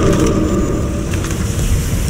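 A large fire roars.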